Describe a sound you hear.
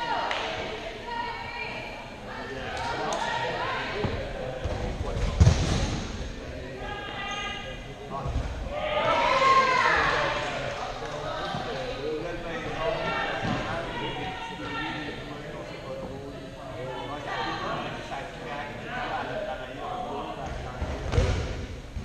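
Young men talk and laugh nearby in a large echoing hall.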